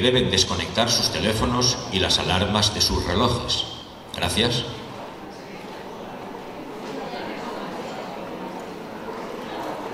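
An audience murmurs quietly in a large hall.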